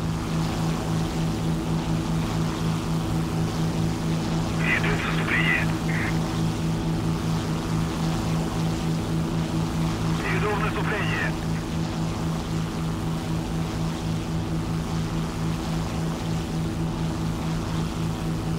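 Twin propeller engines drone steadily and loudly.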